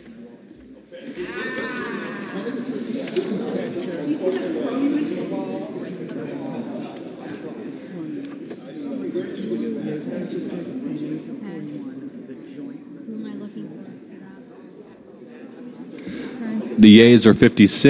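Many people murmur and chat in a large echoing hall.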